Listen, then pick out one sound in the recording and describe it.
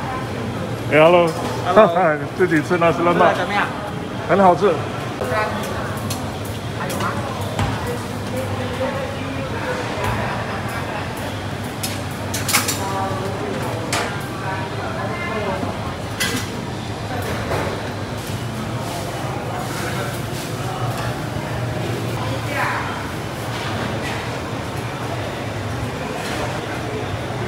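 A crowd murmurs in the background of a busy, echoing hall.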